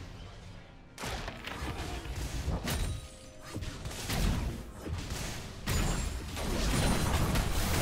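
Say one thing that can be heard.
Game weapons clash and strike repeatedly.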